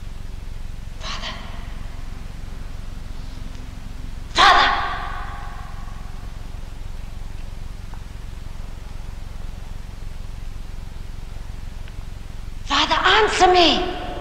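A woman shouts out loudly, her voice echoing in a large hall.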